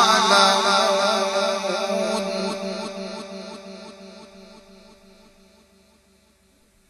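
A man chants in a drawn-out, melodic voice through a microphone and loudspeakers.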